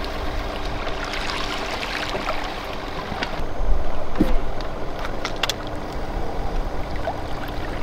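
A fish splashes at the surface of the water.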